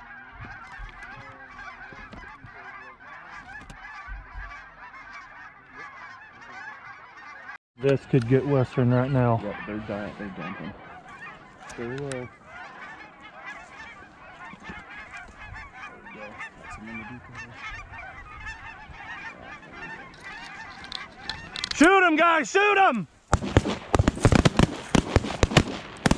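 A large flock of geese honks and cackles outdoors.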